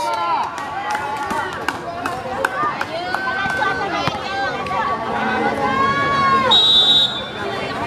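A crowd of spectators cheers and shouts nearby.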